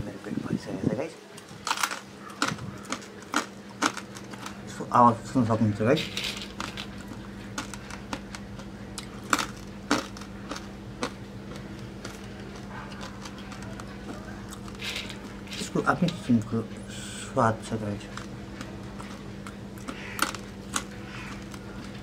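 A man crunches food as he eats.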